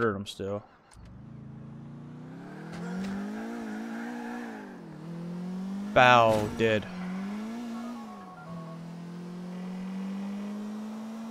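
A car engine hums and revs as a car drives off.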